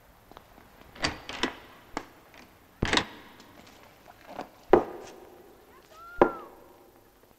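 Shoes knock and scuff on a hard tiled floor.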